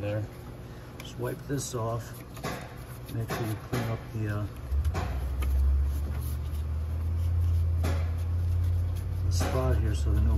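A cloth rubs and wipes against metal engine parts.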